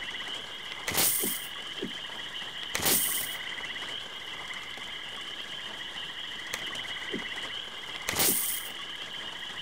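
A short chime of coins sounds with each purchase.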